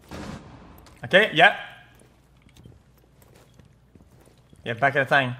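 A young man speaks loudly and with animation into a close microphone.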